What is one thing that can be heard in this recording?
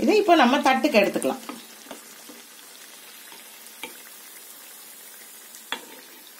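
A metal ladle scrapes and clinks against a pan.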